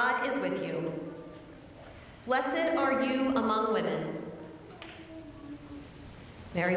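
A woman sings slowly in a large echoing hall.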